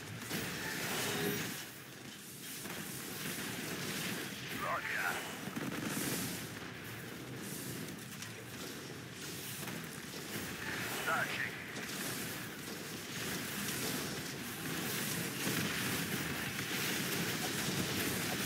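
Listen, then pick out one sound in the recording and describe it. Gunfire and explosions crackle in a game battle.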